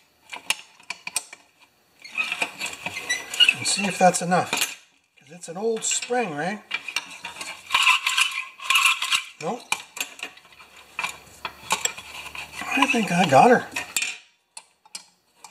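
A metal tool clicks and scrapes against a plastic part.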